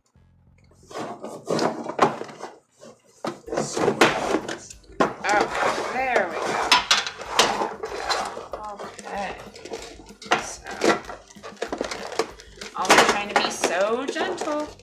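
Plastic packaging crinkles and clicks.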